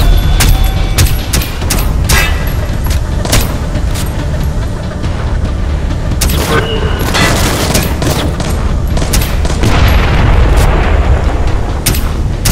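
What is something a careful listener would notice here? Silenced gunshots fire one after another.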